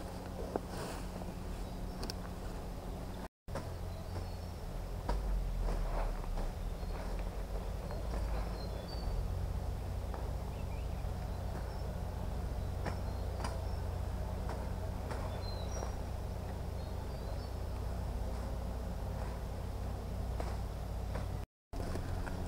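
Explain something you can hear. Leaves and stems rustle and snap in undergrowth.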